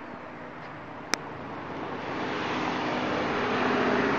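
Traffic passes by outdoors with a steady rush.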